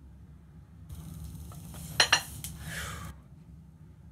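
Metal dumbbell plates clank together as they are lifted.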